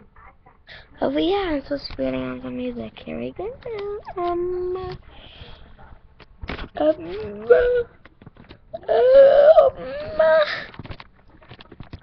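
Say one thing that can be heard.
A young girl cries out loudly and strains her voice, close by.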